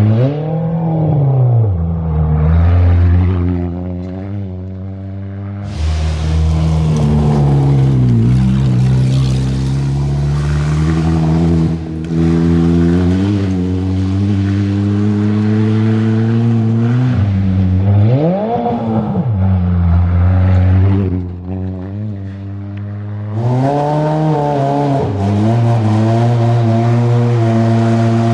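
A rally car engine roars at high revs and shifts gears.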